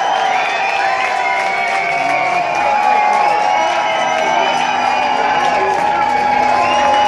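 A rock band plays loudly through big speakers in an echoing hall.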